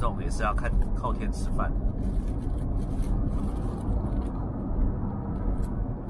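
A woman bites and chews food close by.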